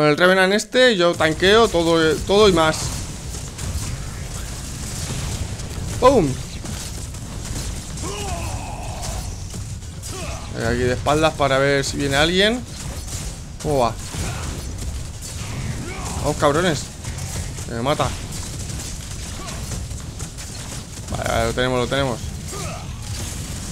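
Blasts, impacts and energy bursts from a game rumble and crackle.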